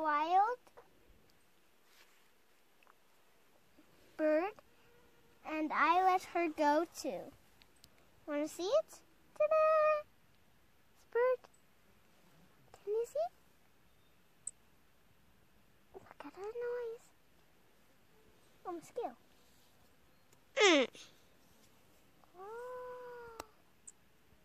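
A young girl talks in short, high bursts close by.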